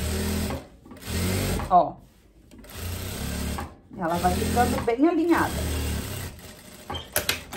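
A sewing machine runs in quick, steady bursts.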